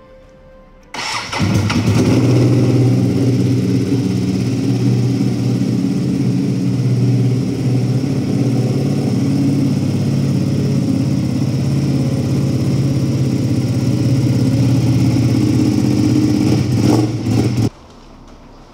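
A motorcycle engine idles loudly and steadily close by.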